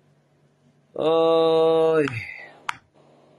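A middle-aged man sings a brief drawn-out note close by.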